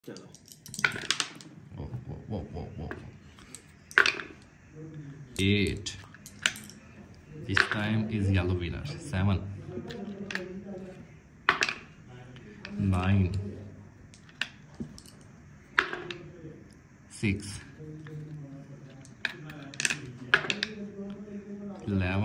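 Dice rattle and roll across a wooden board.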